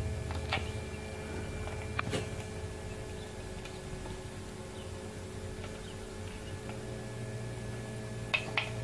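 Newly hatched chicks peep in short high chirps.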